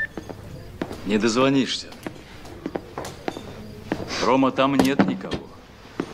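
A man speaks in a low voice close by.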